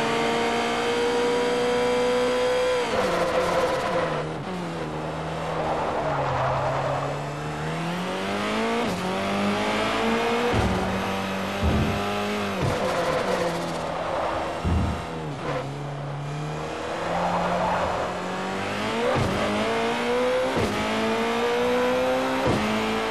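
A racing prototype engine revs high, drops as the driver brakes and downshifts, then climbs again under acceleration.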